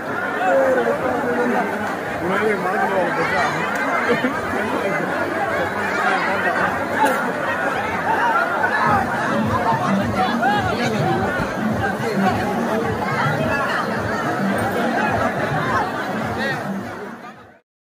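A large crowd of men and women shouts and cheers loudly nearby.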